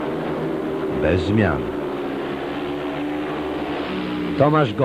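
Motorcycle engines rev up and down sharply as riders pass close by.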